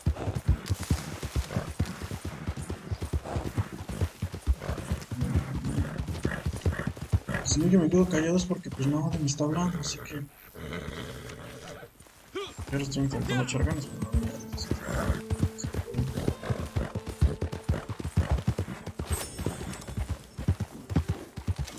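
Horse hooves thud steadily on dry ground.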